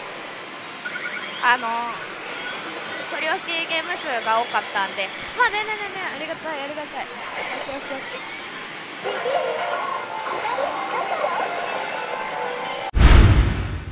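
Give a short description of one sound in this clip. A young woman talks casually and thoughtfully, close by.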